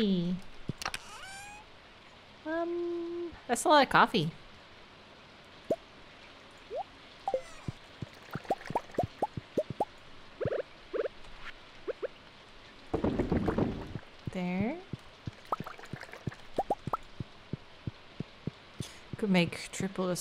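A young woman talks quietly into a microphone, close by.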